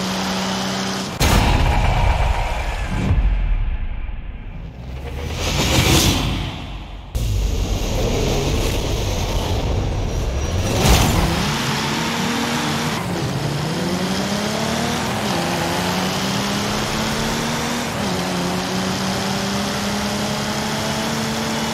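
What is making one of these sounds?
A sports car engine roars and revs as the car accelerates, shifting gears.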